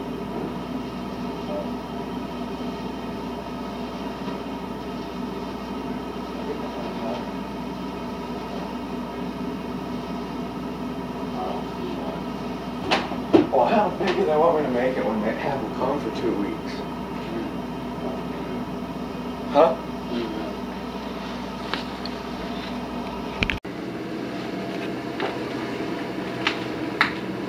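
A leaf vacuum machine's engine drones steadily nearby.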